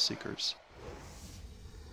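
A weapon strikes with sharp impacts.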